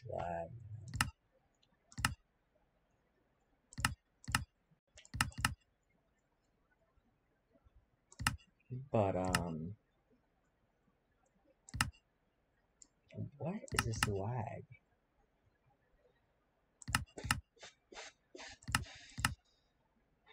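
Menu buttons click sharply, one after another.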